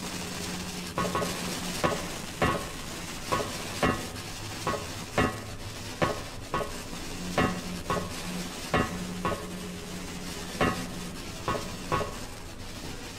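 Footsteps clank on metal ladder rungs in a steady rhythm.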